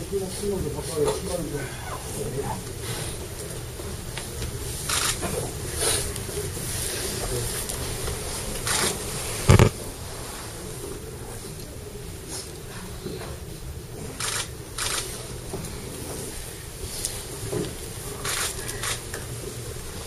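Clothing rustles as several people kneel and bow down to the floor.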